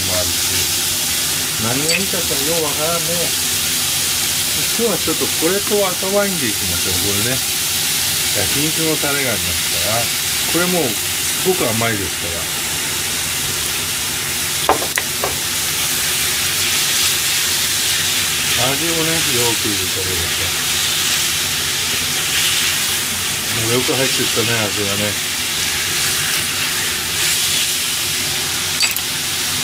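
Meat sizzles steadily in a hot frying pan.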